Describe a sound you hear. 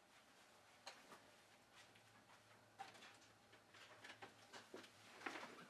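Footsteps thud softly across a hard floor.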